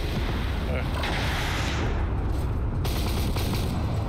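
A shell explodes with a loud blast.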